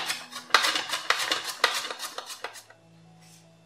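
A vegetable slicer rasps quickly through a carrot.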